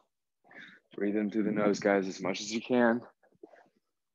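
A young man speaks briskly and close by.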